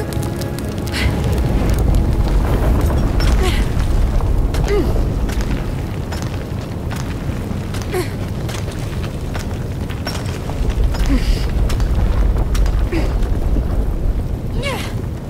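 Hands and feet scrape and knock against rock during a climb.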